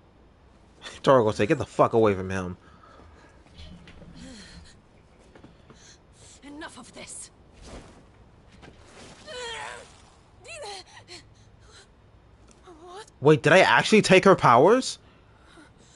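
A woman shouts loudly in distress.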